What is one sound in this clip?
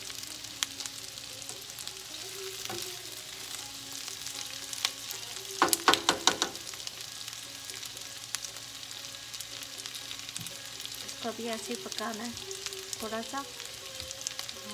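Food sizzles steadily in a frying pan.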